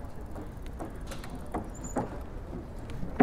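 A bicycle bumps and rattles over boards on the road.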